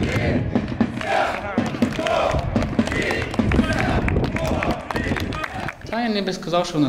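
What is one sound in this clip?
A crowd of fans chants loudly outdoors.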